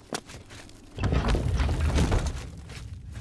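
A heavy stone door grinds open with a deep rumble.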